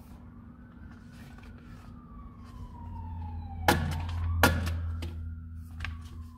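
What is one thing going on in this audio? Sheets of paper rustle and crinkle as they are handled.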